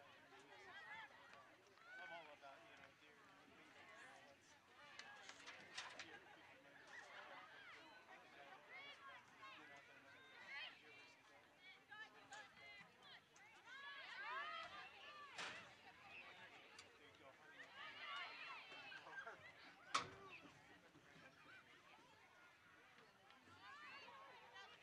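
Young women shout and call out to each other across an open field.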